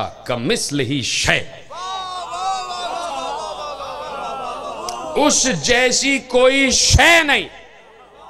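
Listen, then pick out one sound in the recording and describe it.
A man speaks passionately into a microphone over loudspeakers, his voice rising and falling.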